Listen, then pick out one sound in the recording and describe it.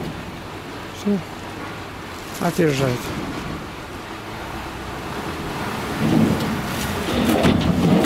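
Sand and earth slide and pour out of a dump truck's tipped bed.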